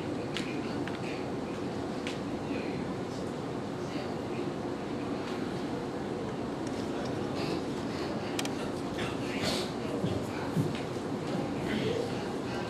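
A man speaks through a loudspeaker in an echoing hall.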